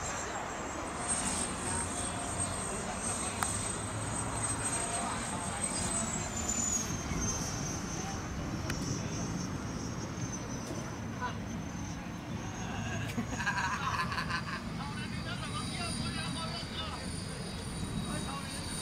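A jet engine roars steadily overhead, with a high whine that slowly drops in pitch.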